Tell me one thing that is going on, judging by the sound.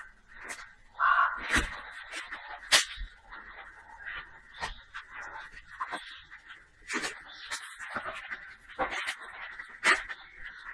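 Leaves and twigs rustle and brush close by.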